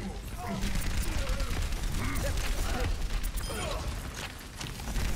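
Gunfire and blasts pop repeatedly.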